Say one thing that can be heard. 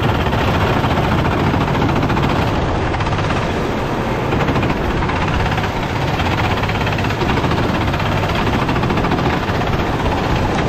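Go-kart engines buzz loudly and steadily close by.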